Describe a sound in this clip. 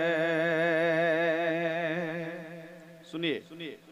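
A man sings a long, wavering note through a microphone and loudspeaker, then fades off.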